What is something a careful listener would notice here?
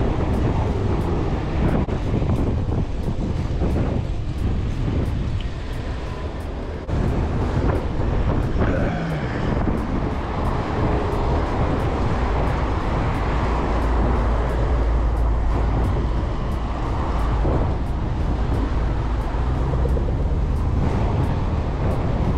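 Wind rumbles across a microphone outdoors.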